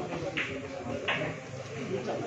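Pool balls knock together.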